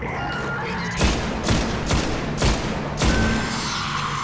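A rifle fires several loud, echoing shots.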